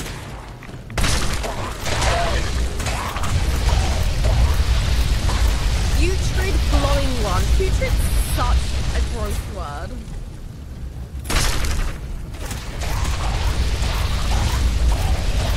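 A flamethrower roars steadily.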